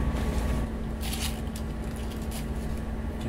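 A hand rummages through small items in a wooden box, rustling and clattering softly.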